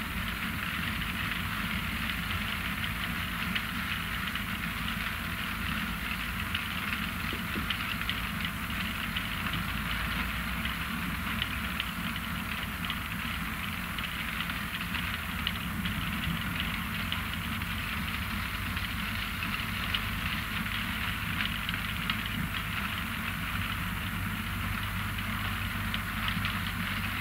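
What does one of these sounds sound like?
A harvester engine rumbles steadily nearby.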